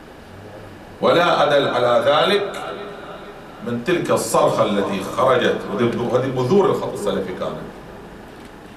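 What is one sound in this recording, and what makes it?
A man speaks with animation into a microphone, in a slightly echoing room.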